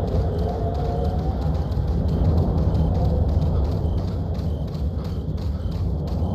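Footsteps crunch slowly on dirt.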